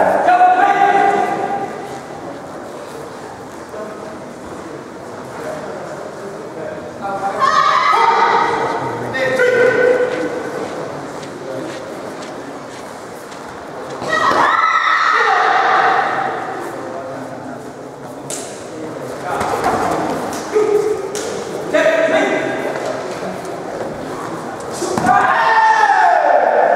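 Fighters' feet thud and shuffle on a mat.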